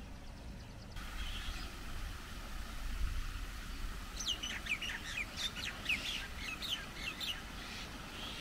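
Water trickles and splashes over rocks nearby.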